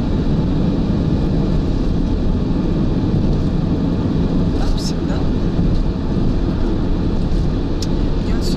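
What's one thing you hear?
A car engine hums steadily while driving on the road.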